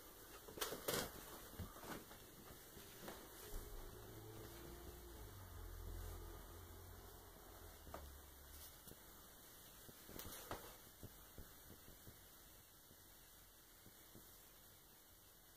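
Wind gusts softly through an open window.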